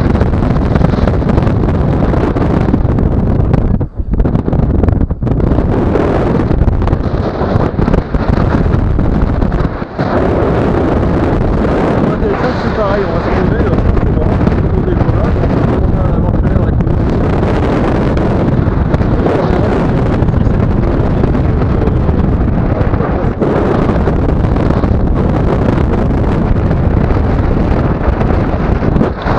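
Strong wind rushes and buffets loudly past a microphone in open air.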